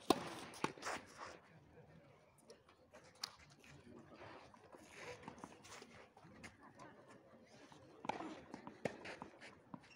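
Tennis rackets strike a ball with sharp pops outdoors.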